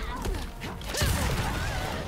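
A fiery chain whips and crackles.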